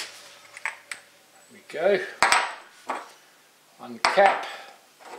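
Metal parts click and clack as a small electric motor is handled.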